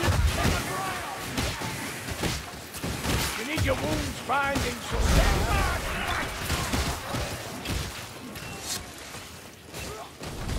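Melee weapons strike and slash at attackers in rapid blows.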